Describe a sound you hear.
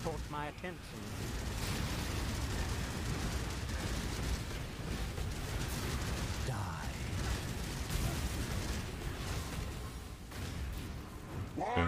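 Magic blasts rumble and crackle during a fierce fight.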